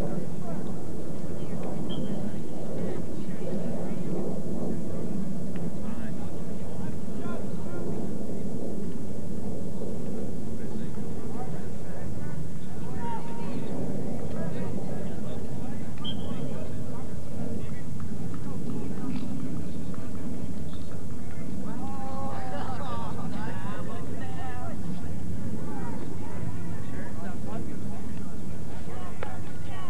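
A crowd of spectators chatters outdoors at a distance.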